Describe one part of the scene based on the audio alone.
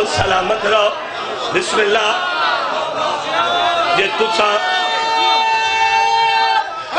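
A man recites loudly and passionately into a microphone, heard through loudspeakers with echo.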